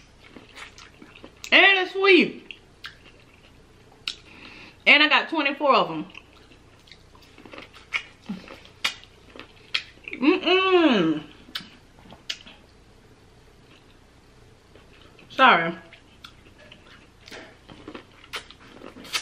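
Wet food squelches and smacks as a young woman chews close to a microphone.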